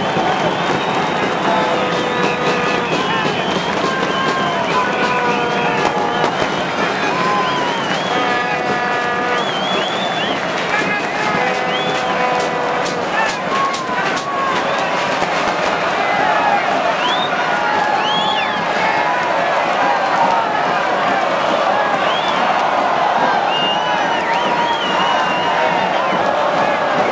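A huge crowd cheers and chants loudly all around, heard outdoors.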